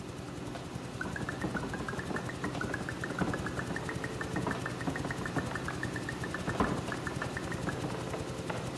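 Rapid rising plinks sound as fruit pops into being, one after another.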